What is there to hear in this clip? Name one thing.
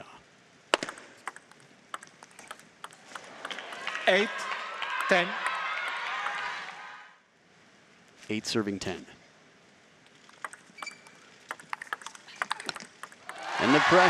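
A table tennis ball clicks off paddles and bounces on the table.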